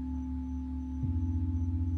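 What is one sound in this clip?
A second bowl is struck and rings out near the end.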